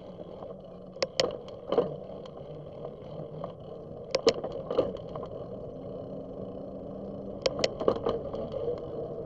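A bicycle rattles and clatters sharply over bumps.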